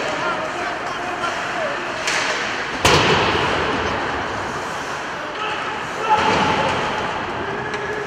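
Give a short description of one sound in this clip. A crowd of spectators murmurs and calls out.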